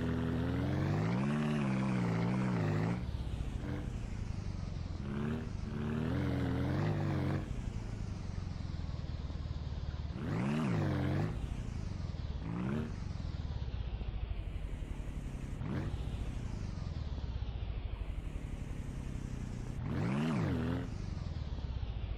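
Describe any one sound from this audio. A small vehicle's engine hums steadily and revs up and down as it drives over rough ground.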